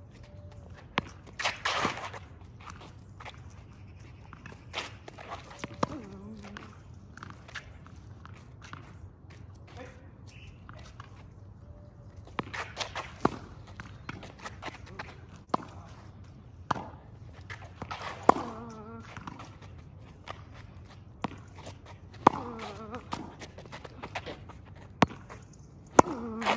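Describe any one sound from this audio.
A ball is struck with sharp knocks, again and again, outdoors.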